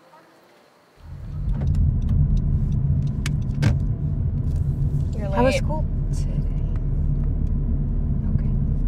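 A car rumbles along, heard from inside the cabin while driving.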